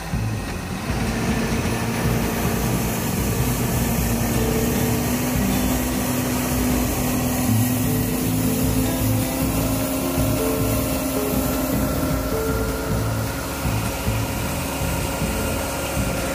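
Grain pours and hisses steadily into a trailer.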